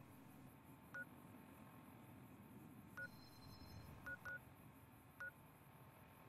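Short electronic beeps chirp now and then.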